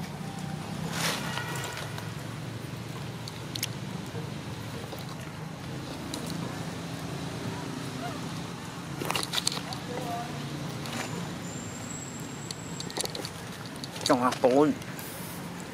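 A young monkey gives short, high squeaks.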